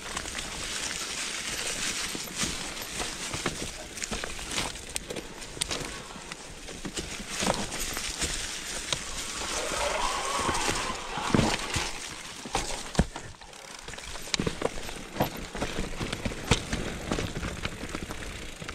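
Bicycle tyres crunch and rattle over a rough dirt and rocky trail.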